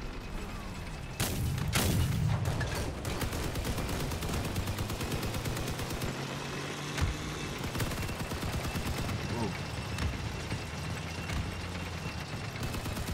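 Tank tracks clatter over the ground.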